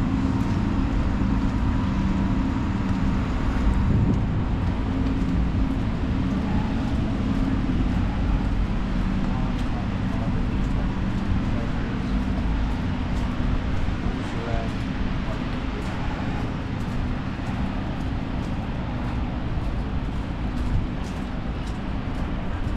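Wind blows and rumbles outdoors on a snowy city street.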